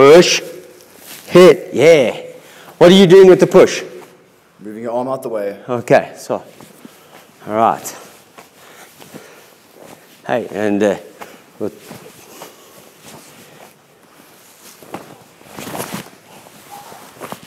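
Hands slap and strike against a partner's arms.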